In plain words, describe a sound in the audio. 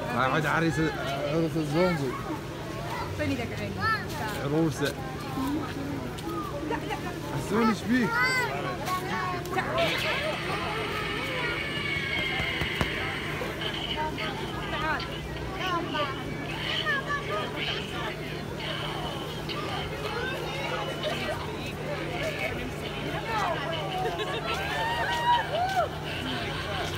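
A crowd of men, women and children chatter nearby outdoors.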